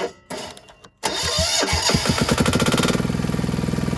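A starter motor cranks a machine's engine.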